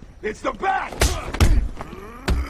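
A heavy kick lands on a body with a dull thud.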